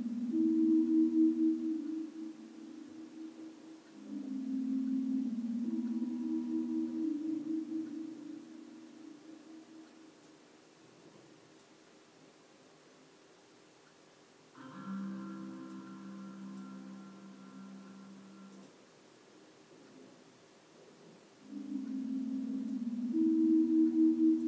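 A dog whimpers and whines softly in its sleep.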